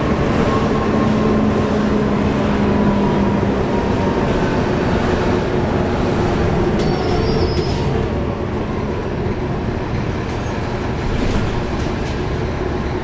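A bus engine hums and rumbles steadily as the bus drives along.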